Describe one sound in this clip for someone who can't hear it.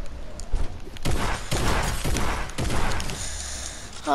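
A gun fires rapid loud shots.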